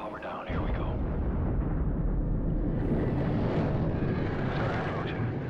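A deep engine rumble drones steadily.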